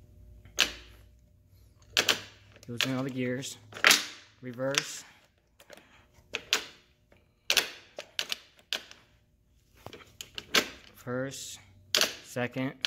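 A gearbox shift linkage clunks sharply several times.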